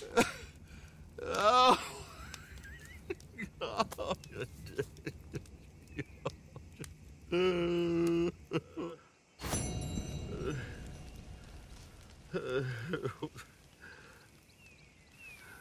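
A small campfire crackles.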